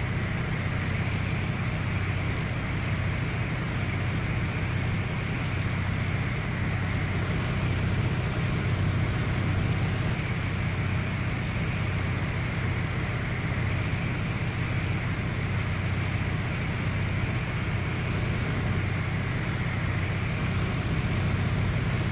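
A light aircraft's propeller engine drones steadily in flight.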